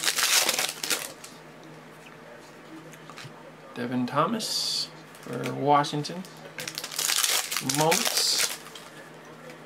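Foil wrappers crinkle and rustle.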